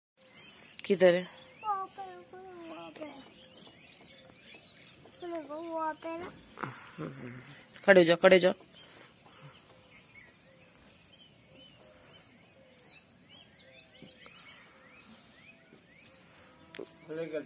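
A young child talks and calls out close by.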